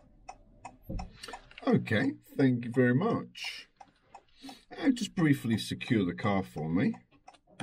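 A middle-aged man speaks calmly close by inside the car.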